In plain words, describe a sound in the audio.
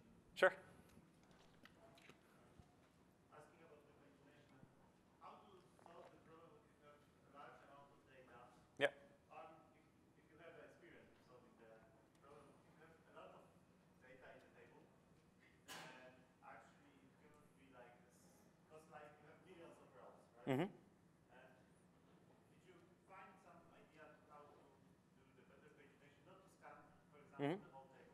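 A man speaks steadily to an audience, heard from a distance.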